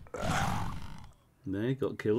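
Fire whooshes and roars in a short burst.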